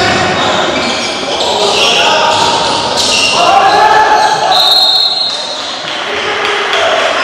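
Voices and shouts of players and spectators echo in a large gym.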